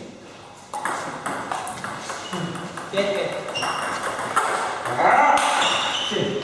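A ping pong ball clicks back and forth between paddles and a table in a quick rally.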